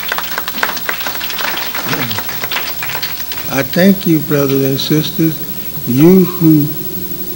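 An elderly man speaks slowly and with emphasis into a microphone.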